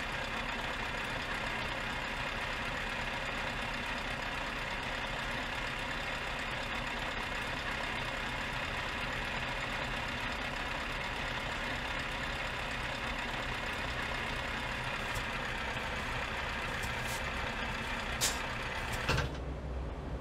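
A truck engine idles with a steady hum, heard from inside the cab.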